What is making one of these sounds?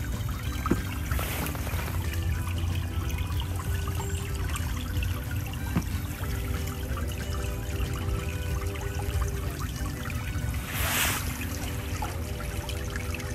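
Shallow water trickles softly over pebbles.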